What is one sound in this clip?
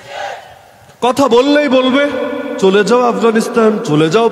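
A man chants loudly in a singing voice through a microphone.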